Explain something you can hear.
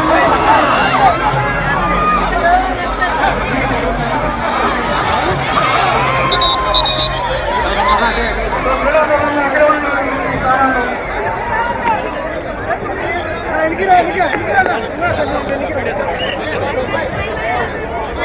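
A crowd of men and women chatters and calls out loudly nearby, outdoors.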